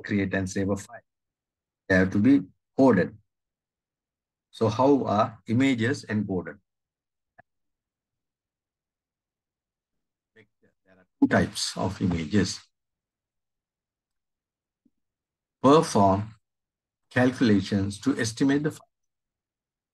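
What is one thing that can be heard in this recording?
A man speaks calmly through an online call microphone, pausing often.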